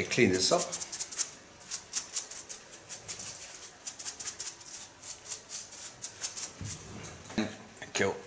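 Scissors snip quickly through hair.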